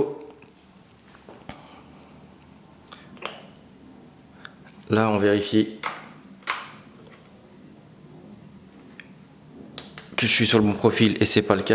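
Switches on a handheld remote control click softly.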